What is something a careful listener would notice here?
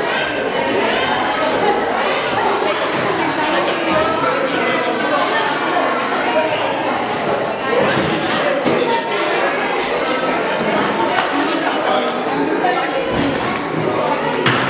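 Small feet run and thump on a wooden stage.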